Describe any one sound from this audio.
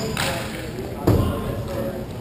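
A puck strikes a goalie's pads with a sharp knock.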